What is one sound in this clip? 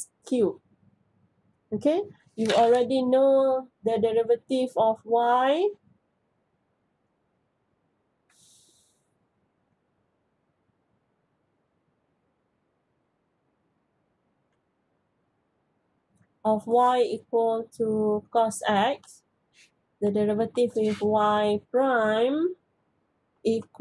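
A woman speaks calmly into a microphone, explaining, with long pauses.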